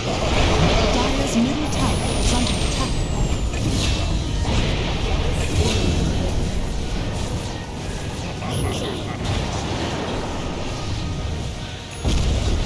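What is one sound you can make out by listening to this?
Magic spells crackle and whoosh in a fierce game battle.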